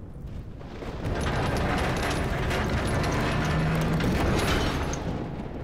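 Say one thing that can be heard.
Heavy machinery rumbles and grinds loudly.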